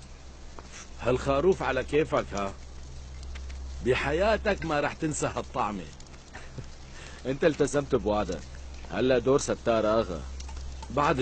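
A middle-aged man speaks loudly.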